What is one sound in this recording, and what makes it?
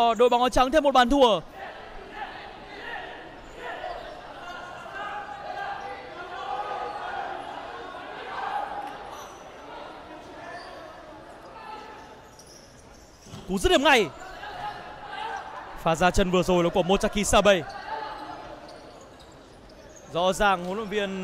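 A man shouts loudly in an echoing hall.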